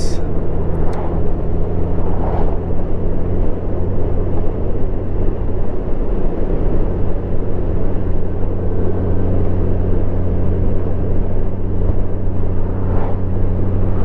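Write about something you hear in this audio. A car passes by in the other direction with a brief whoosh.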